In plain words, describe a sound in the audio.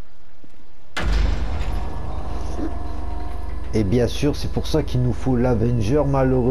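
Heavy metal hangar doors rumble as they slide open.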